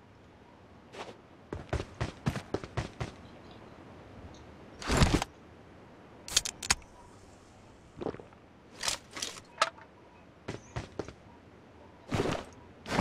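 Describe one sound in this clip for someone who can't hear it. Short sharp clicks and taps sound in quick bursts.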